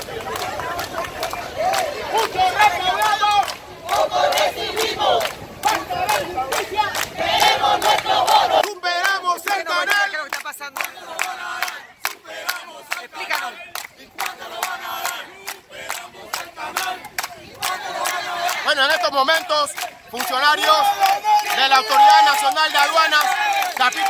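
A crowd of men and women chants and sings loudly outdoors.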